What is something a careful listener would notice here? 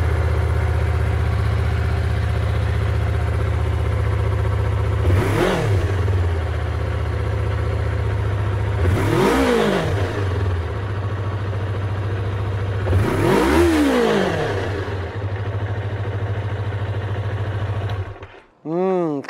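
A motorcycle engine idles with a deep, steady rumble.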